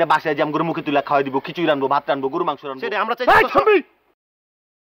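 A young man talks quickly and with animation, close by.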